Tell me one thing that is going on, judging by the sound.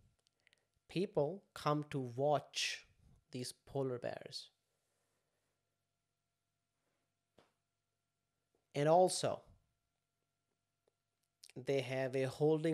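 A young man talks calmly and closely into a microphone, pausing now and then.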